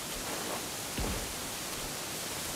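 Something plunges heavily into water with a splash.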